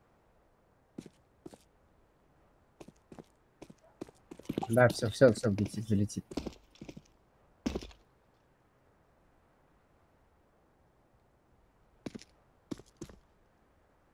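Footsteps tap on hard stone.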